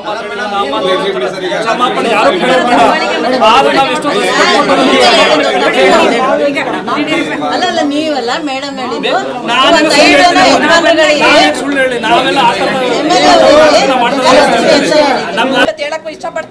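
A crowd of men and women talk over each other.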